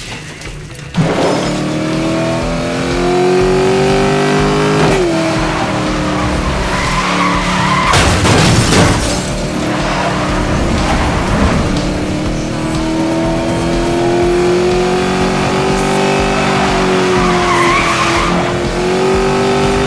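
A high-powered car engine roars and revs as it speeds up.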